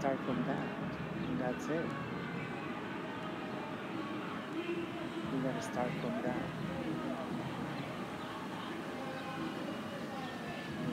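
A middle-aged woman talks calmly, close by, outdoors.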